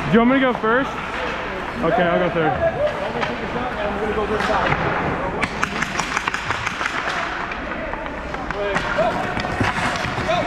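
Hockey sticks clack against the ice and a puck.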